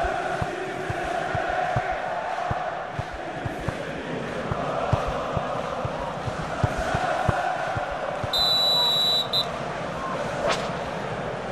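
A football is kicked with dull thuds, again and again.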